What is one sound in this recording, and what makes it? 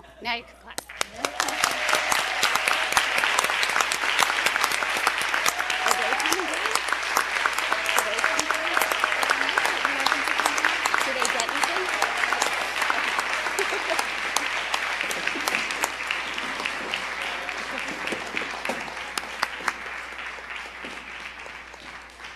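A group of people applaud.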